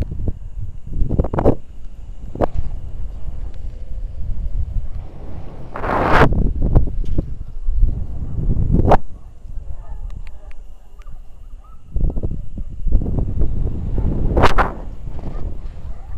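Wind rushes and buffets loudly against a microphone.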